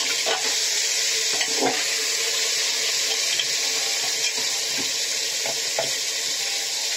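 A metal spatula scrapes and clinks against a metal pot.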